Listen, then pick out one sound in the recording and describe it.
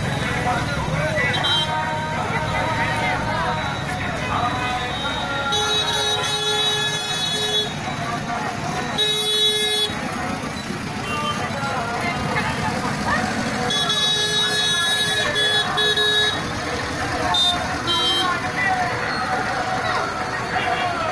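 A crowd of men and women talk and shout outdoors nearby.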